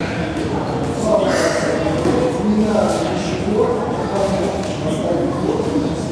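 Children shout together in a large echoing hall.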